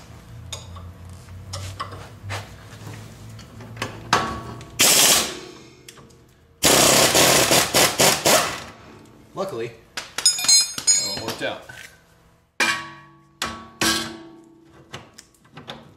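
Metal tools clink and knock against car parts.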